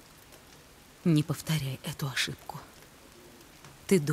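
A young woman speaks softly and earnestly, close by.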